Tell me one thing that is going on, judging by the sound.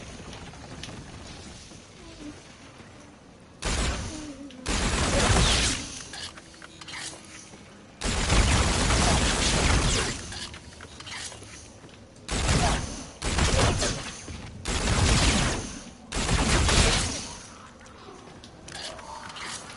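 A boy talks with animation into a close microphone.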